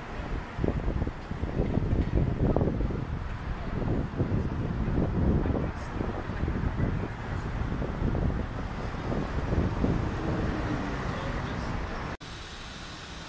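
Cars drive past on a busy street outdoors.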